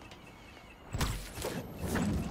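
A web line shoots out with a sharp whoosh.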